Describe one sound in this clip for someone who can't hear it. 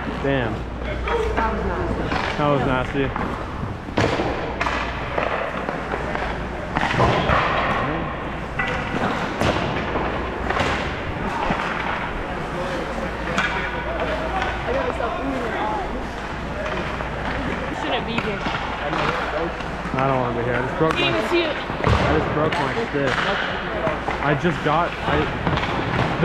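Hockey sticks clack on the ice and against pucks.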